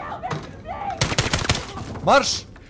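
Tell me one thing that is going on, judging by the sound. A rifle fires a rapid burst of shots.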